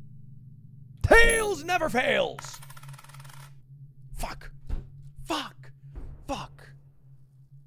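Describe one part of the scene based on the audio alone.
A young man shouts and talks with animation close to a microphone.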